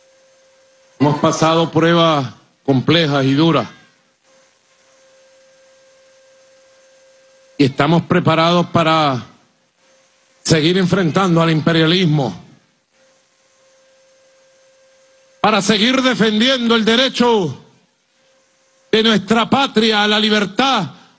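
A man speaks forcefully through a microphone, in short phrases with pauses.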